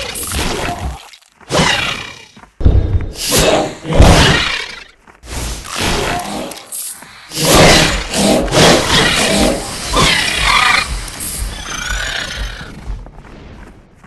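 Swords clash and strike with sharp impacts.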